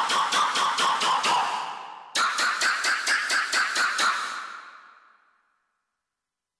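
Electronic handclaps patter in two quick rolling bursts, then fade away.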